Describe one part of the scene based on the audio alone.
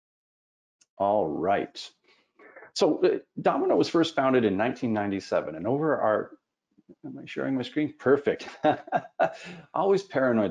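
A middle-aged man speaks calmly through a headset microphone, as on an online call.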